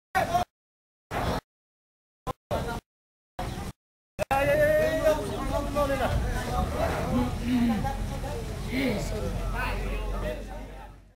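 Several men talk and call out close by, outdoors.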